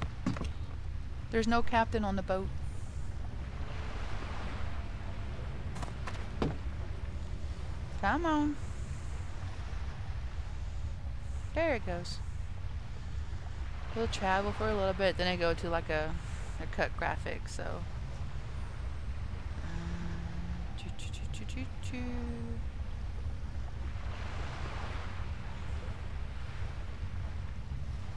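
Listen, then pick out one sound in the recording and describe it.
Water laps gently against a wooden ship's hull.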